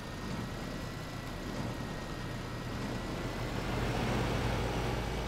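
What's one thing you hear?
A tractor engine rumbles steadily and grows louder.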